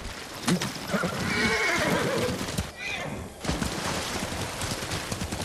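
A horse splashes through shallow water.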